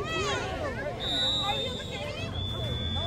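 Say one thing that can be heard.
A referee's whistle blows a long shrill note.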